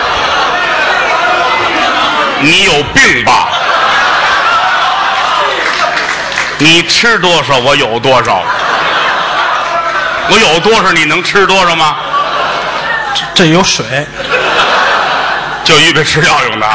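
An audience laughs loudly in a large hall.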